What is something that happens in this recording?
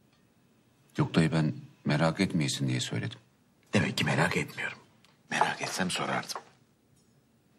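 A man speaks calmly and seriously.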